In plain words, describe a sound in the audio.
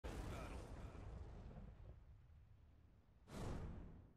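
A fiery roar rumbles and slowly fades.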